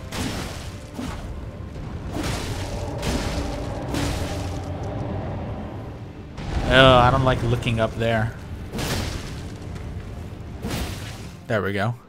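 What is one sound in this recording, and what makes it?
Heavy weapon blows land with sharp, repeated thuds.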